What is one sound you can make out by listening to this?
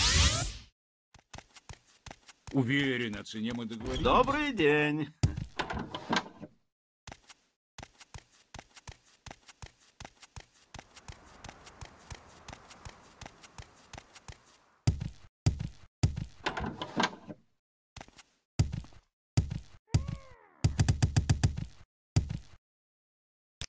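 Quick footsteps patter on hard floors and paving.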